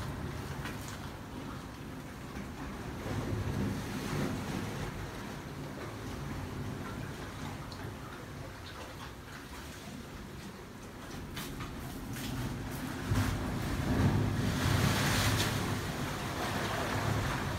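Sea water washes and laps gently over rocks.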